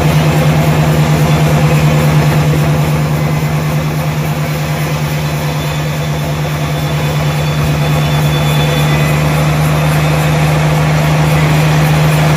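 A large band saw hums loudly and steadily as it cuts through a log.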